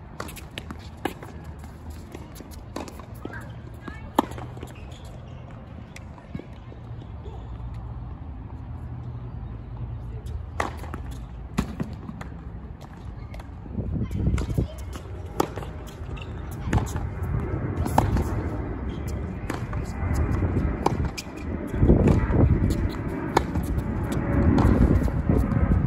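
Tennis balls bounce on a hard court.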